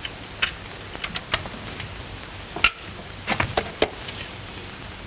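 A safe's dial clicks and its door creaks open.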